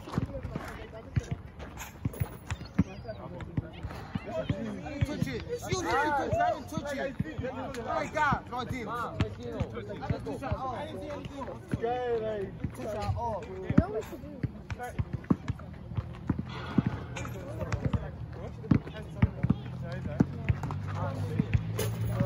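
A basketball bounces on the hard court.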